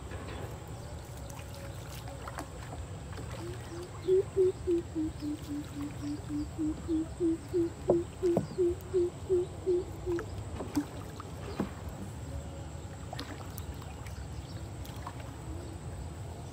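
A fishing net splashes into the water.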